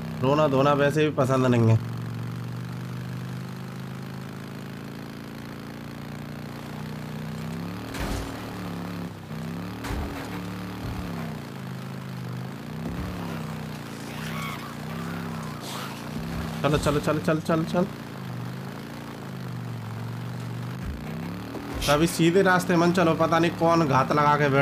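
A motorcycle engine hums steadily, rising and falling in pitch as the bike speeds up and slows.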